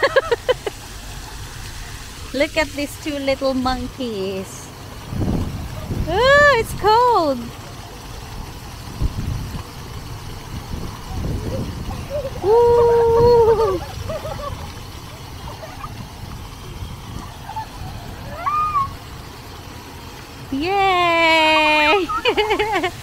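Young children squeal and shout with excitement close by.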